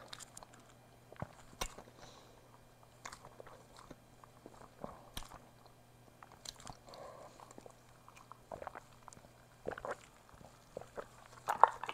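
A woman sips a drink through a straw close to a microphone.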